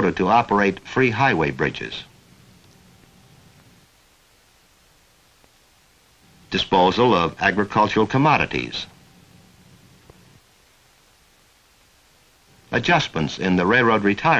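Sheets of paper rustle as they are picked up and leafed through.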